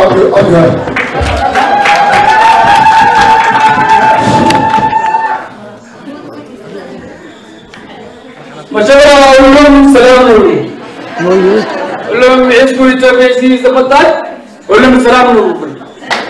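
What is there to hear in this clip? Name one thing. A man sings loudly through a loudspeaker in an echoing hall.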